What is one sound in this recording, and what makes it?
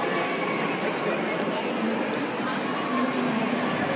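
Paper pages rustle as a book's page is turned.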